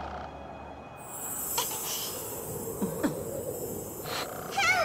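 A bright magical shimmer rings out.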